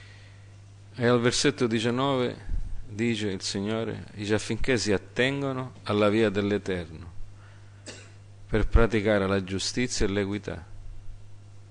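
A middle-aged man speaks slowly and clearly into a microphone, heard through a loudspeaker.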